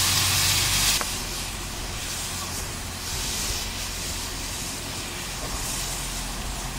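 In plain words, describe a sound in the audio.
Steam hisses softly from a steam locomotive.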